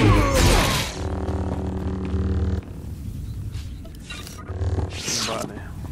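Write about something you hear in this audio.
A lightsaber hums with a low, steady buzz.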